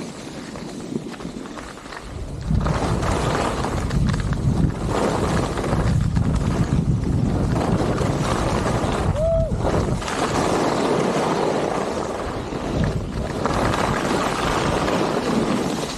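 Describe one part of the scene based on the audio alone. Skis hiss and scrape over packed snow.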